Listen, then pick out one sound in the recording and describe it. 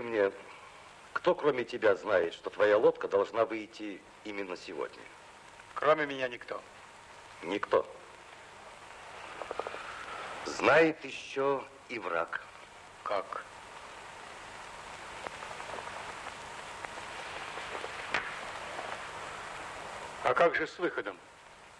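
A middle-aged man speaks calmly and seriously nearby.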